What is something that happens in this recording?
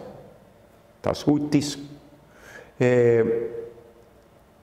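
A middle-aged man speaks calmly and close by into a clip-on microphone, with pauses.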